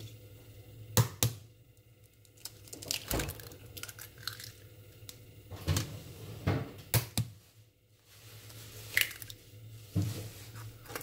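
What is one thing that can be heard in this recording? Raw eggs plop into a ceramic bowl.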